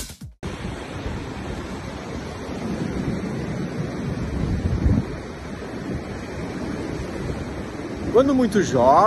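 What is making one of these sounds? Waves crash and wash onto a shore nearby.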